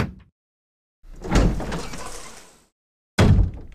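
A heavy wooden door creaks slowly open.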